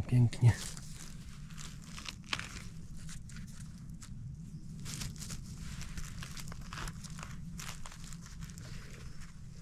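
A hand rustles through dry needles and leaves on the ground.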